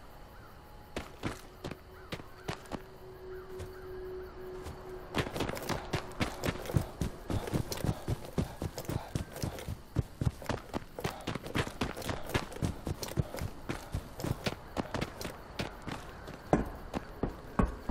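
Footsteps crunch quickly over gravel and rock.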